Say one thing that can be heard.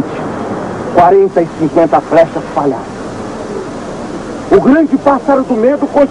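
A man speaks loudly, close by.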